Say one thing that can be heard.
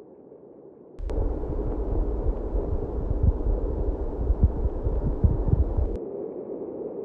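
Fabric rubs and brushes loudly against the microphone.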